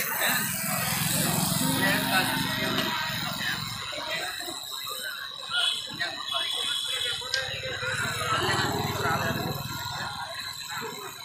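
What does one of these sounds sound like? A tattoo machine buzzes in short bursts.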